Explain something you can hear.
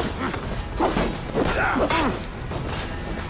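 Weapons clash and strike during a fight.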